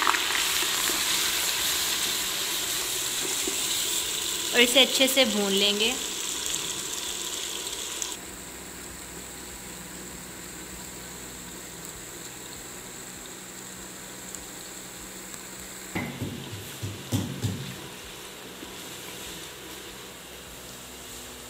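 A wooden spoon scrapes and knocks against a metal pot.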